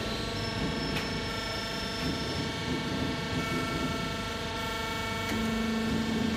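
A cutting press clanks sharply.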